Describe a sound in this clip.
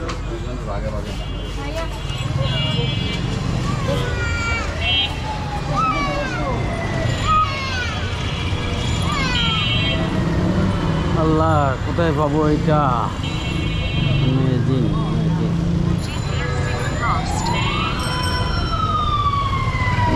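Vehicle horns honk repeatedly nearby and in the distance.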